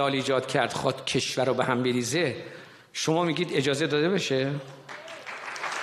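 An elderly man speaks forcefully into a microphone in a large hall.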